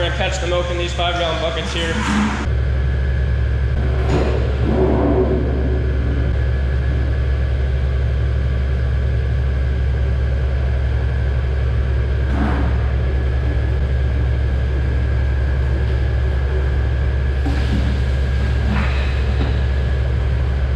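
A machine hums steadily nearby.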